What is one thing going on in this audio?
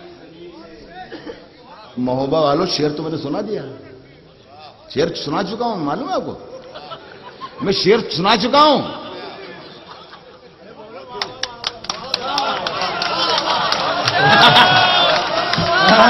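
A middle-aged man speaks with animation into a microphone over a loudspeaker.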